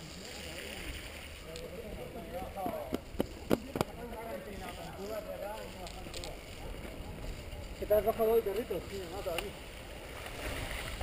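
Bicycle tyres roll over a bumpy dirt trail.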